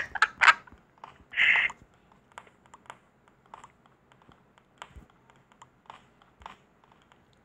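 A pickaxe taps and scrapes against stone blocks in quick, repeated knocks.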